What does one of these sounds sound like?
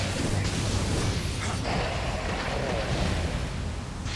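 Blades clash and strike.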